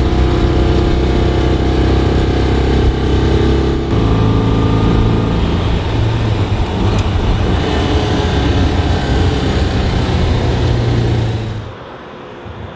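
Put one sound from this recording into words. A small car engine drones loudly from inside the cabin.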